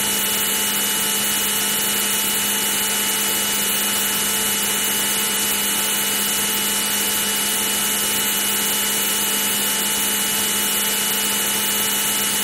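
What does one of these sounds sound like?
A fighter jet's engine roars steadily.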